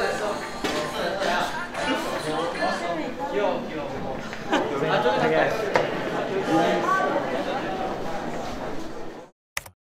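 Young men talk and laugh excitedly nearby.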